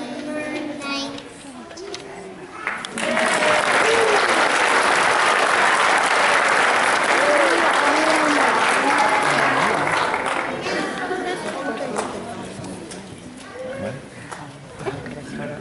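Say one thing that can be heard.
Young children talk and chatter nearby.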